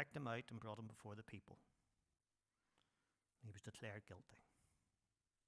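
A middle-aged man speaks calmly into a microphone in a reverberant hall, pausing between phrases.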